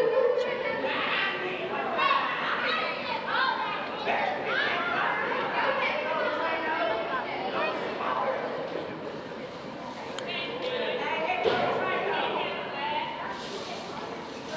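Men shout and talk with animation in a large echoing hall.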